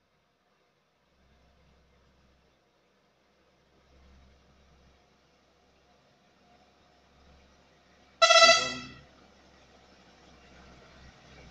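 A diesel lorry approaches.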